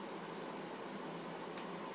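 A plastic spoon clicks against a bowl.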